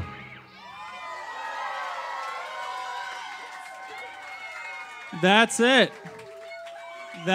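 An audience cheers and whoops loudly.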